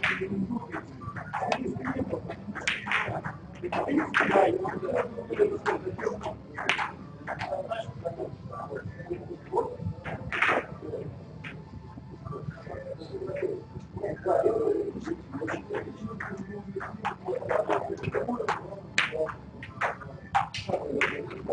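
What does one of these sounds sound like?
Snooker balls clack together on the table.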